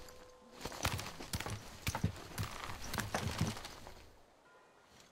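Wooden ladder rungs creak and knock as someone climbs.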